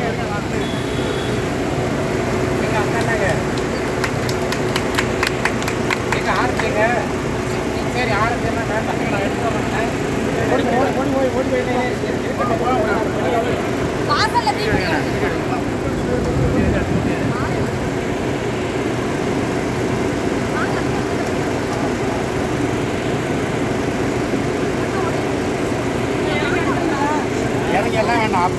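A crowd of men and women talk and call out loudly outdoors.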